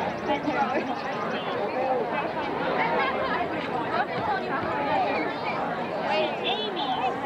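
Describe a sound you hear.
A crowd of people chatters and talks outdoors, close by.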